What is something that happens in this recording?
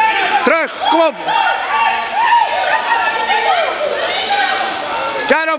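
Water splashes as water polo players swim and throw in an echoing pool hall.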